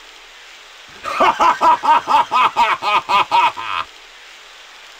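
A man laughs loudly and maniacally.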